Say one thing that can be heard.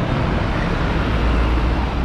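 A motorcycle engine drones past.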